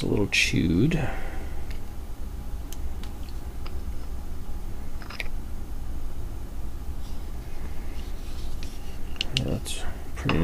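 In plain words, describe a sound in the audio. A small screwdriver clicks and scrapes against a metal gauge ring.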